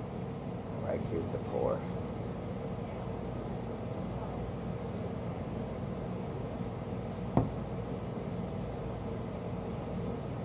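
Liquid pours and fizzes into a glass.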